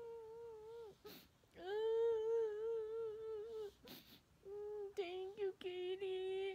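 A young woman hums long, steady notes close by.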